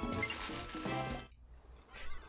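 A video game jingle chimes brightly.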